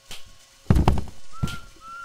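A swinging door bangs open.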